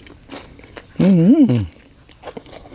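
A man hums a drawn-out sound of enjoyment, close up.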